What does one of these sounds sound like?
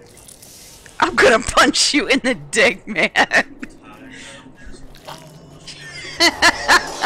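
A young woman laughs loudly into a headset microphone.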